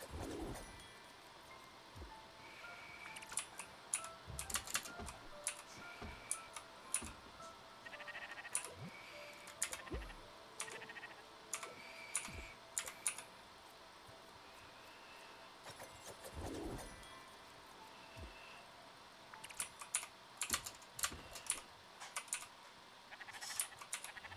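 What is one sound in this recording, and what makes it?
Short game sound effects click and chime.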